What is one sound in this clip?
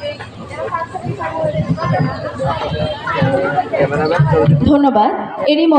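A woman speaks into a microphone through loudspeakers outdoors.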